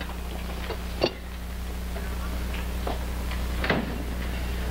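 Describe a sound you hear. A door latch clicks sharply.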